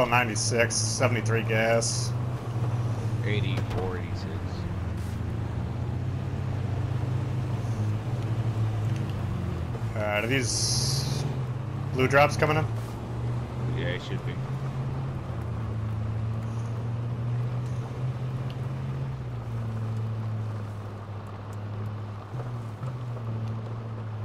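A truck's tyres crunch over gravel and dirt.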